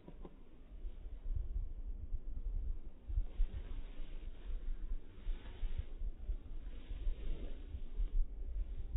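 Wind blusters against the microphone outdoors.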